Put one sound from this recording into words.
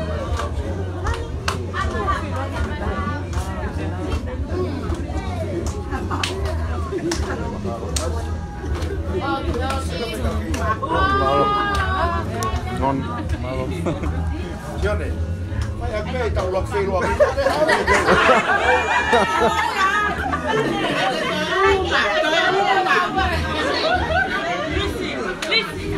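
A crowd of men and women sing and chant together in a room.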